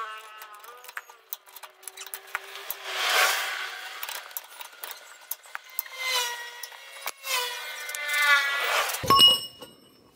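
A ratchet wrench clicks as a nut is turned.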